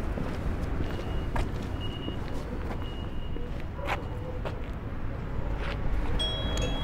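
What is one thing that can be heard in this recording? Footsteps walk on a pavement outdoors.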